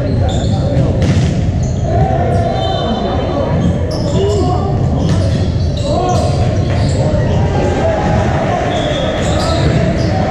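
A crowd of children and adults chatters throughout a large echoing hall.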